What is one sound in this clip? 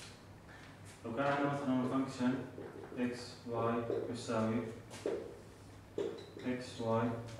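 A man speaks calmly, close by, as if explaining.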